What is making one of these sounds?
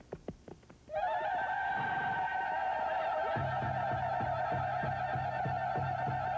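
A man sings out loudly.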